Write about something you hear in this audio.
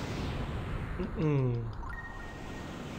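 A short bright jingle chimes.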